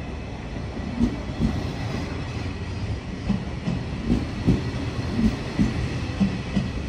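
Wheels clack over rail joints in a steady rhythm.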